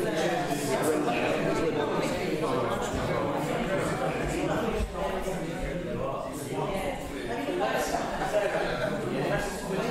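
Several men talk over one another.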